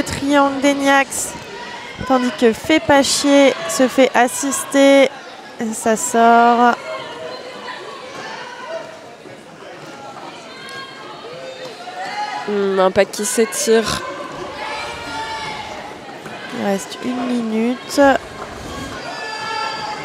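Skate wheels roll and scrape on a wooden floor.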